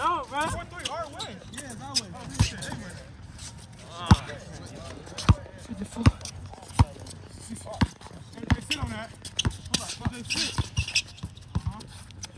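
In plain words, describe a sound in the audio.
A basketball bounces repeatedly on hard pavement.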